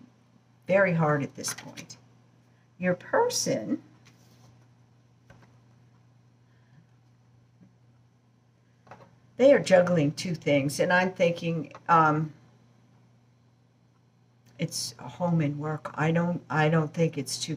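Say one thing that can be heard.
A middle-aged woman speaks slowly and thoughtfully close to a microphone, with long pauses.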